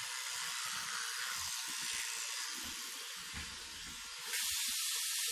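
An electric toothbrush buzzes.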